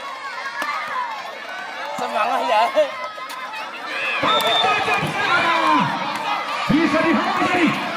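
A volleyball is struck with the hands.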